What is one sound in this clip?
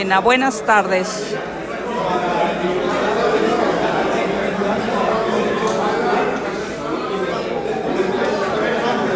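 A crowd of men and women talks all at once, filling an indoors space with a dense murmur.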